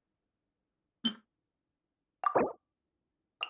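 A soft menu chime sounds.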